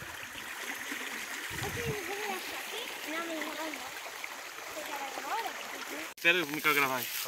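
Water splashes as a man wades through a shallow stream.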